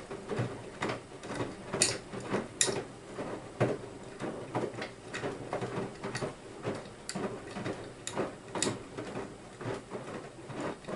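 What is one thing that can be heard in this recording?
Clothes thump softly against a washing machine drum as it turns.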